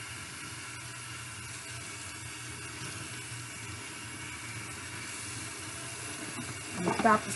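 Water runs from a tap into a metal sink.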